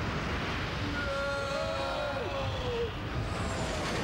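A man cries out in alarm.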